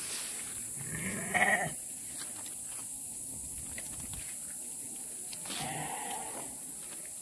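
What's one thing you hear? A sheep bleats outdoors a few times.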